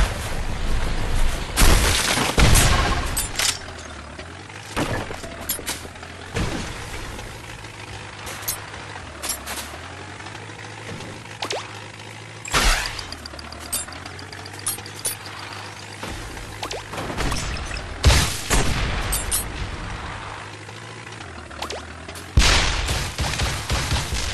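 A toy-like car engine hums steadily.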